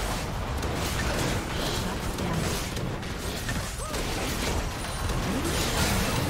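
Fantasy battle effects of spells and strikes crackle and clash loudly.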